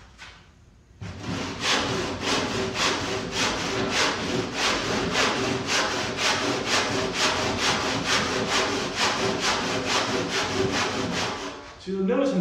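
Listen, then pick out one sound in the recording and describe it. A hand saw cuts through wood with quick, rhythmic strokes.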